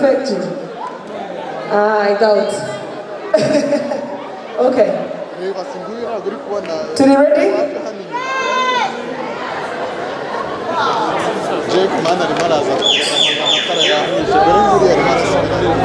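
A crowd cheers and chatters.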